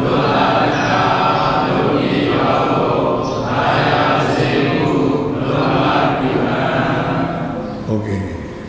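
A group of men chant together in unison in a large echoing hall.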